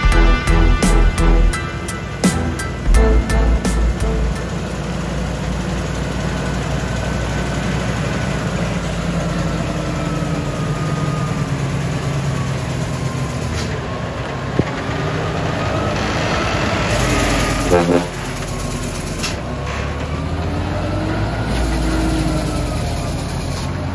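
A heavy truck engine rumbles as the truck slowly rolls downhill.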